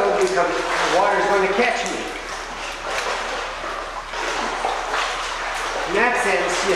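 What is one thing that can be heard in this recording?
Water splashes as a man wades and moves his arms through it.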